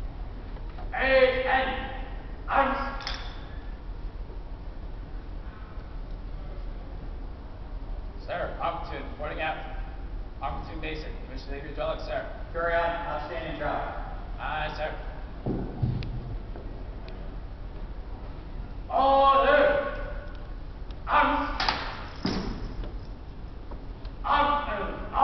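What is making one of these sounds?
A man shouts drill commands loudly in a large echoing hall.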